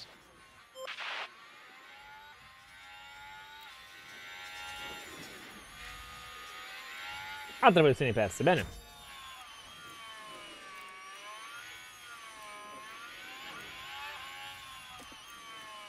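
A racing car engine whines, rising and falling in pitch.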